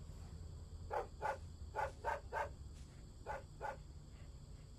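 A dog barks several times.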